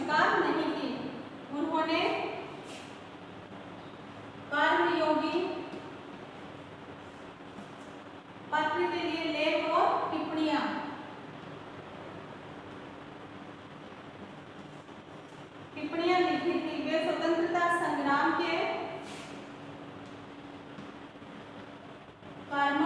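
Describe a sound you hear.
A woman speaks calmly and clearly, in short phrases.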